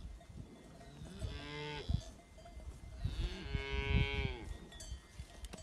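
A bull lows loudly close by.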